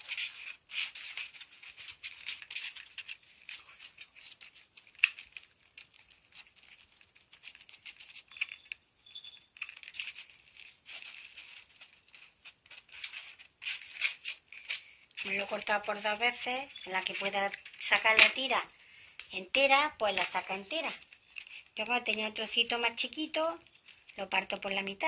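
Foam crackles softly as hands handle it.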